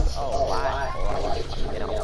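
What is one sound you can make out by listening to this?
A character gulps down a drink.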